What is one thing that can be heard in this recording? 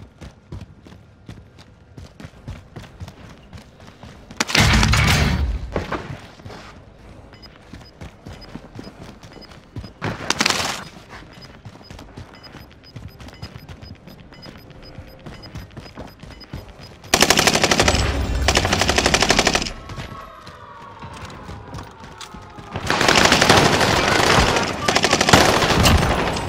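Footsteps patter steadily on hard floors.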